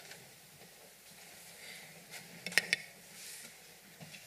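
A chair creaks as a man sits down.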